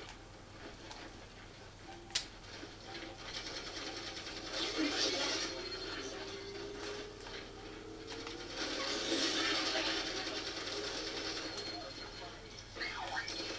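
Gunfire and energy blasts from a video game crackle and boom.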